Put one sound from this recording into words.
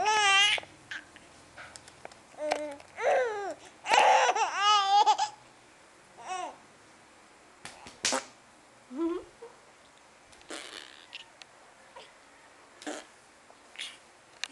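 A baby squeals and giggles close by.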